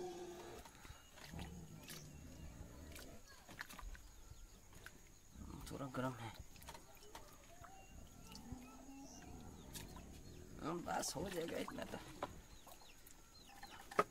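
A stick scrapes and stirs thick wet mix in a plastic bucket.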